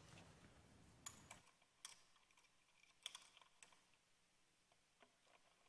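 Woodwind keys click and clack sharply.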